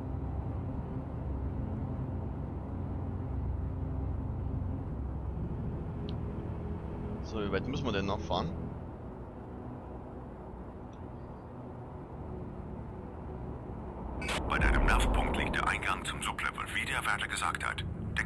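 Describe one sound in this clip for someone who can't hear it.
A spacecraft engine hums low and steadily.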